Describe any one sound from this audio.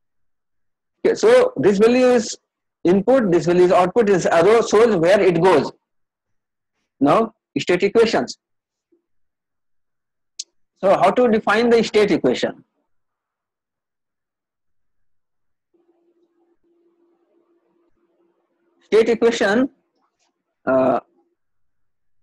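A man speaks calmly and explains, close to a microphone, with long pauses.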